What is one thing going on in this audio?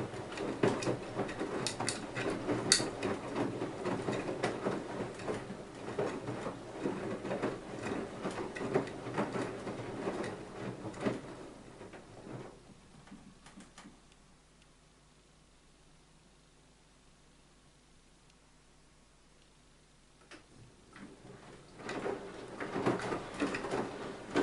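Wet laundry thuds and tumbles inside a washing machine drum.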